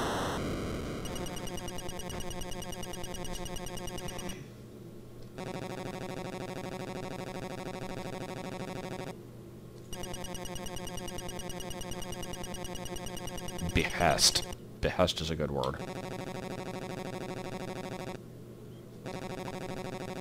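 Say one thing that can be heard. Fast electronic blips tick steadily as dialogue text scrolls.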